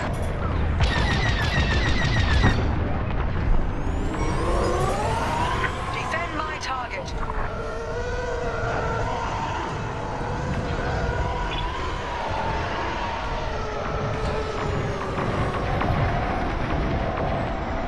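A starfighter engine roars steadily with a low rumble.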